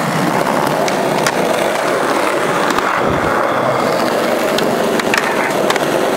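A skateboard clacks and grinds against a metal edge.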